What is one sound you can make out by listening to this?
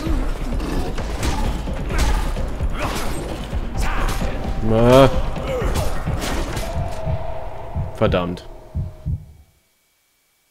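Knife blows strike and slash in a fight.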